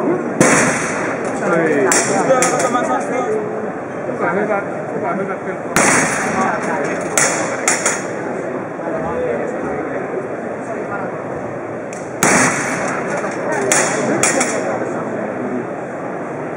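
Many people chatter in a large, echoing hall.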